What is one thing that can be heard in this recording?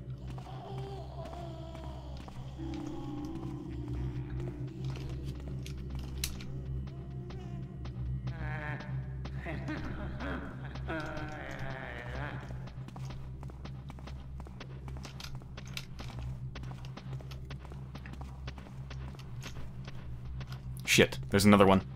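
Footsteps scuff steadily on stone.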